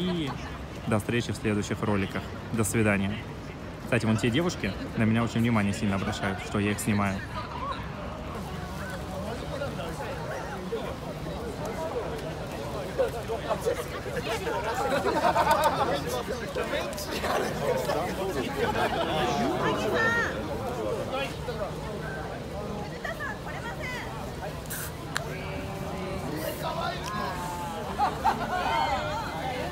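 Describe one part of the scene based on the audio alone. A crowd of men and women chatter and laugh outdoors.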